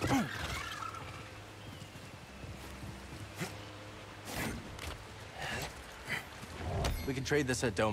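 Boots scrape and thud on rock.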